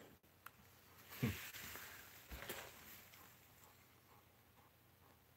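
A dog pants softly nearby.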